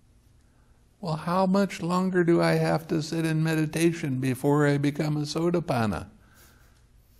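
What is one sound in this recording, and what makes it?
An elderly man speaks calmly and expressively into a close microphone.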